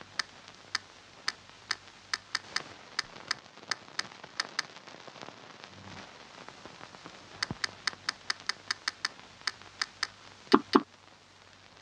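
Short menu clicks tick repeatedly at an uneven pace.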